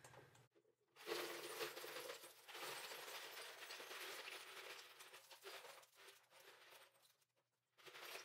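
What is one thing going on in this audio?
Water pours into a pitcher.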